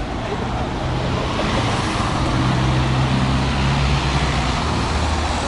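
A car engine hums close by as the car pulls past.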